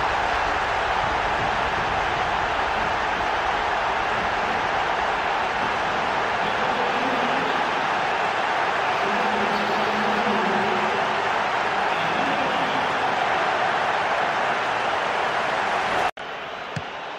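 A large crowd cheers and roars loudly in a stadium.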